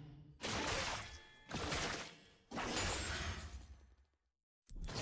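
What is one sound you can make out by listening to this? Game combat sounds of spells and hits burst out.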